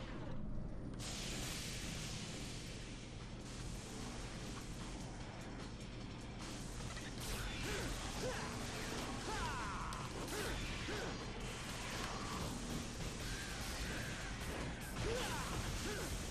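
A magical portal whooshes and hums steadily.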